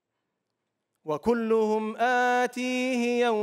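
A man chants in a long, melodic voice through a microphone in a large hall.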